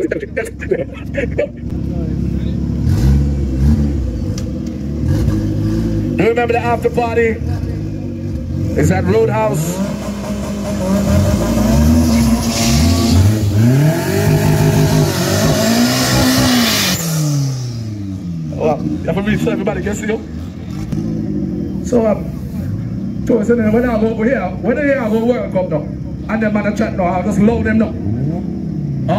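A car engine idles loudly and revs up and down, roaring in rising bursts.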